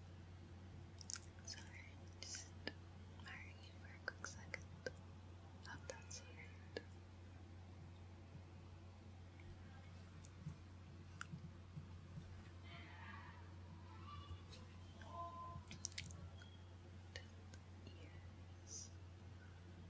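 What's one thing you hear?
A young woman makes soft mouth clicks close to a microphone.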